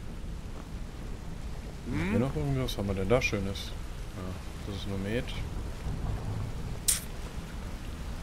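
Water splashes steadily from a small waterfall.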